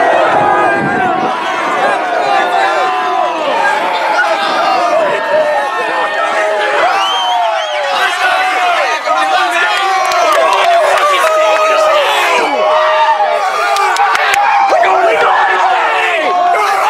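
A crowd of teenage boys shouts and cheers close by.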